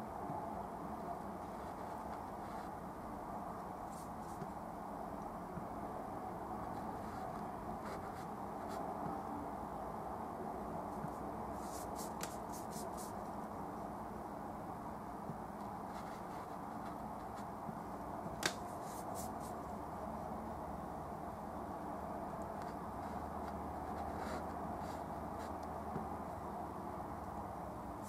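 A brush dabs and strokes softly on canvas.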